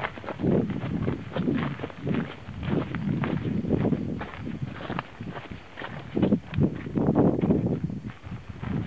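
Footsteps crunch steadily on a dirt and gravel path.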